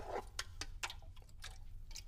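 A young man gulps down a drink.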